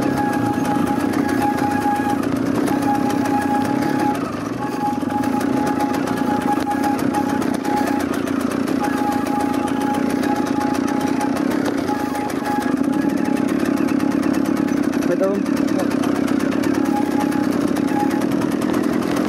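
Another dirt bike engine revs a little way ahead.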